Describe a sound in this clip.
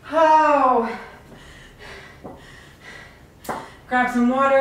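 Dumbbells clunk onto a hard floor.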